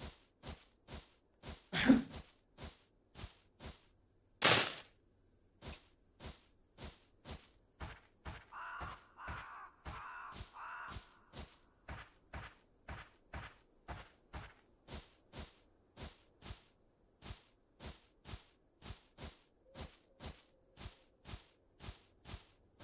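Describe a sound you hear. Footsteps tread steadily and quickly through undergrowth.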